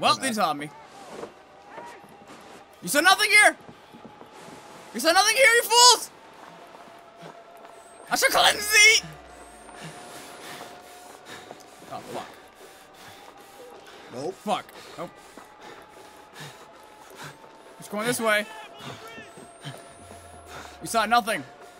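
A second young man talks and exclaims into a microphone, close by.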